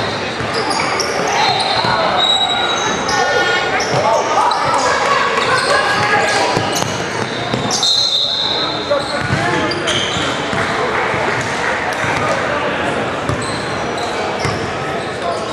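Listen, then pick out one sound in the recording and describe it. Sneakers squeak sharply on the hardwood court.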